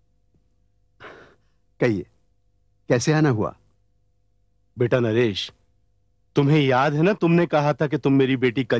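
A second man speaks calmly in reply.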